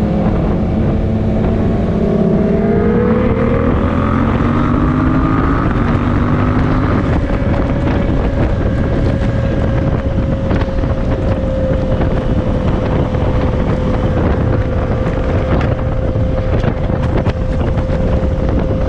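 Wind roars loudly against the rider.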